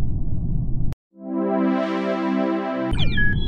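A bright victory jingle plays.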